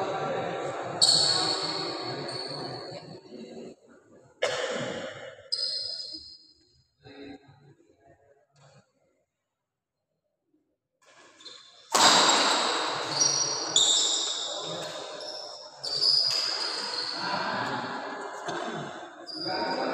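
Badminton rackets smack a shuttlecock back and forth in an echoing hall.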